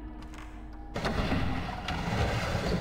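A door creaks and scrapes open.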